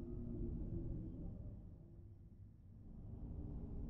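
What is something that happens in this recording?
A glowing orb whooshes through the air.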